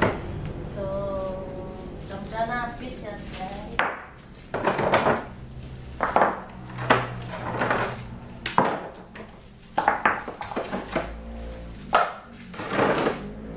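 Items knock and clink inside a refrigerator.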